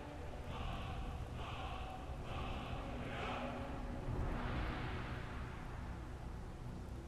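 An eerie magical chant pulses and swells from a wall of carved runes.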